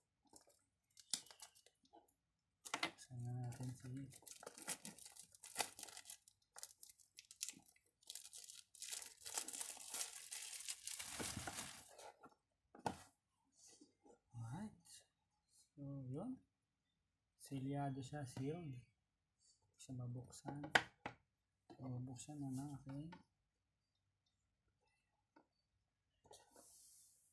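Cardboard boxes and plastic wrap rustle and scrape as they are handled.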